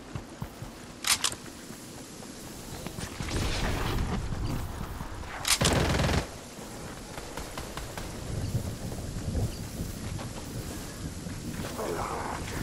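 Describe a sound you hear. Footsteps run over ground.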